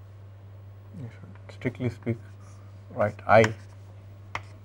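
A man speaks briefly and calmly nearby.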